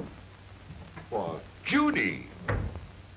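A woman speaks loudly and with agitation.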